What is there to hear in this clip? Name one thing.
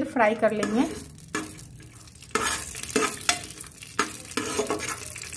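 Nuts sizzle and crackle in hot oil.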